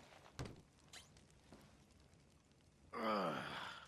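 A wooden cabinet door creaks open.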